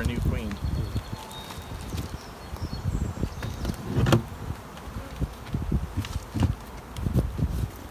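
A hive tool scrapes and knocks against a metal hive lid.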